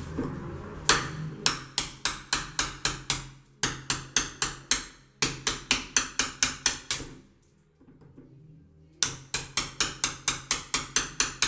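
A scraper scrapes repeatedly against a window frame in quick strokes.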